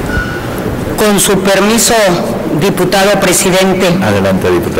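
A middle-aged woman speaks into a microphone in a large echoing hall.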